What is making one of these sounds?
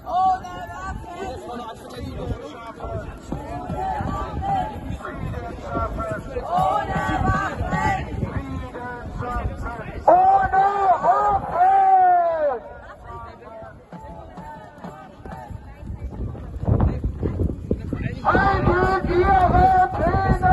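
A crowd of marchers chants loudly together outdoors.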